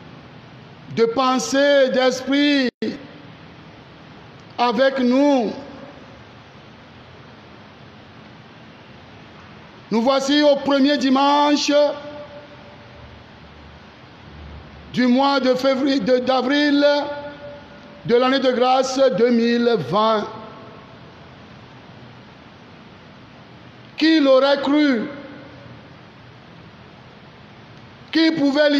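A man sings a chant in short phrases through a microphone, in a room with some echo.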